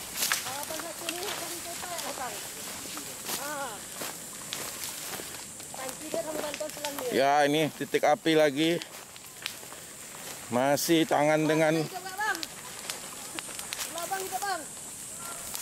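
Men talk and call out loudly nearby.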